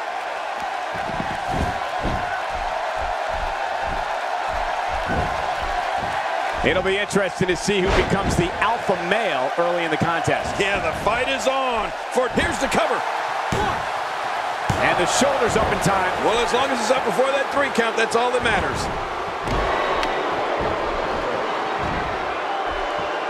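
Bodies slam onto a wrestling ring mat with heavy thuds.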